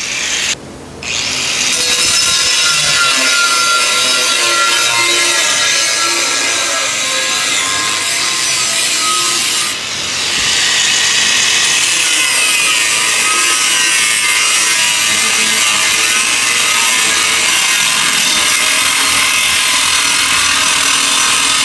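An angle grinder whines loudly as it cuts into steel, with a harsh screeching grind.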